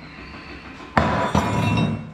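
A metal piece clunks down onto a metal table.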